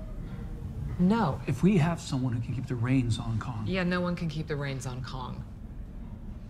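A woman speaks urgently nearby.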